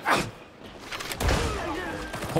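A heavy blade slashes into flesh with a wet thud.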